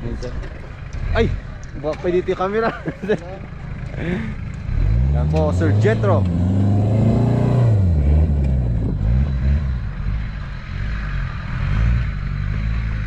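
An engine roars and revs hard as an off-road vehicle climbs a steep dirt mound.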